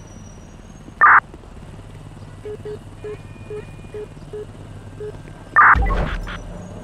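A handheld radio crackles with a short burst of static.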